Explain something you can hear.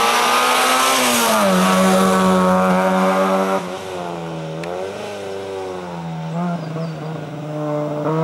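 A car engine roars loudly past close by and then falls in pitch.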